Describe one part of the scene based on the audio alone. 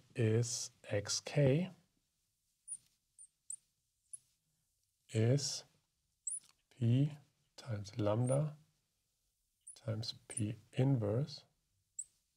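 A man speaks calmly and clearly into a close microphone, in short phrases.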